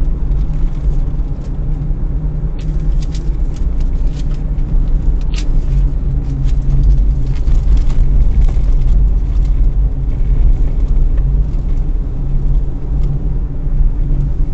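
Tyres rumble over a rough road surface, with small clicks and knocks.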